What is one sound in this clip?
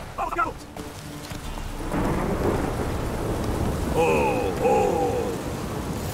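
A horse's hooves thud on the ground at a trot.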